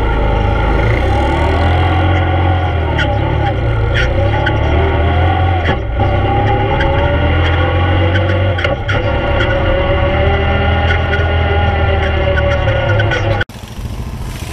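An all-terrain vehicle engine drones loudly up close.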